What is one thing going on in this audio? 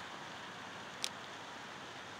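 A small fish splashes softly at the surface of still water.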